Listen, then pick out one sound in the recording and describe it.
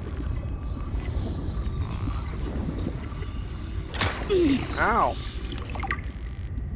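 Water rumbles in a low, steady underwater drone.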